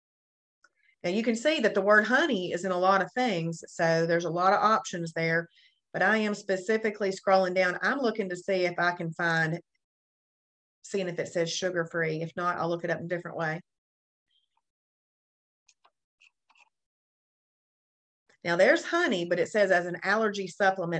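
A woman talks calmly and close to a microphone, in short bursts with pauses.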